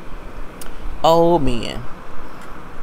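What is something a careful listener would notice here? A young woman hums a short, drawn-out sound close by.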